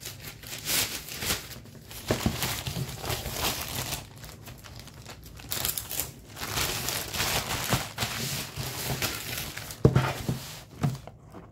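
A plastic mailer bag crinkles and rustles as it is handled.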